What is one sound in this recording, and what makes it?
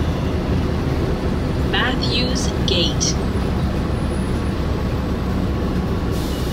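A vehicle's engine rumbles steadily from inside as it drives along.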